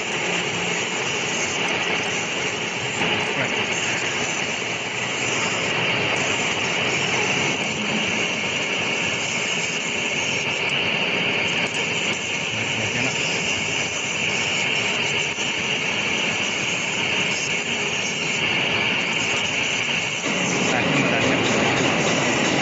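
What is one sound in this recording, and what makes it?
A fiber laser marker buzzes as it cuts through thin stainless steel sheet.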